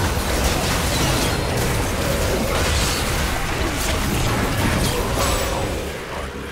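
Game spell effects crackle and burst in a fast battle.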